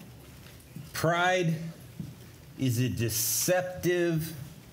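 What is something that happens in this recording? An adult man speaks calmly through a microphone.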